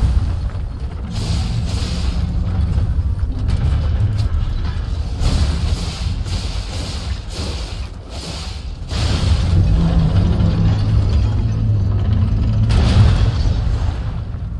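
A huge metal machine stomps with heavy, clanking thuds.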